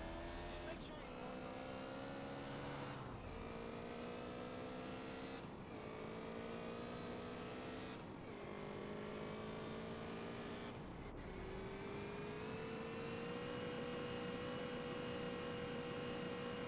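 A motorcycle engine revs up and shifts through its gears as it speeds along.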